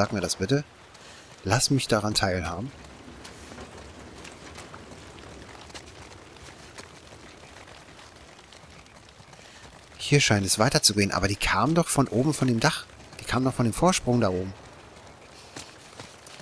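Footsteps splash on wet ground.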